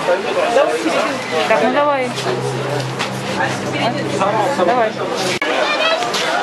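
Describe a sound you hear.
Several young men talk casually nearby.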